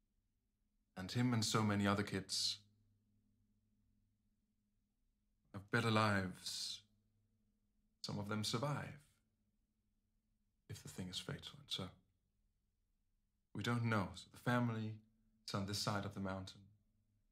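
A man speaks with animation, close to a microphone, in short bursts.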